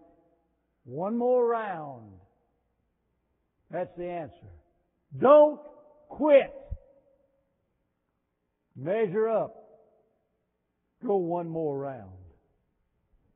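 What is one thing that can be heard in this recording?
An elderly man preaches forcefully through a microphone, with long pauses.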